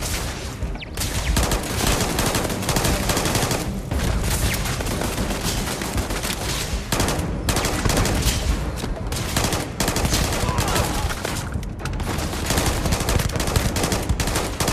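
Rapid gunfire rattles and echoes in a large hall.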